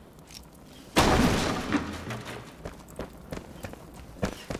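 An axe chops into wood.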